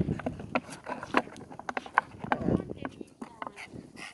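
A plastic bottle crinkles as a small dog noses it.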